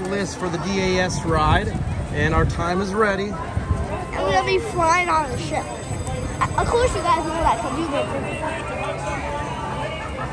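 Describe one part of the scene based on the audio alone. A young boy talks excitedly up close.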